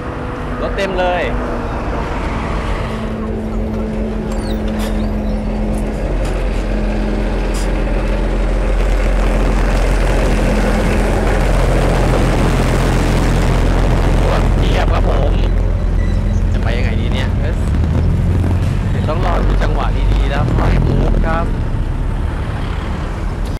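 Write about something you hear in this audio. Traffic roars steadily along a busy road.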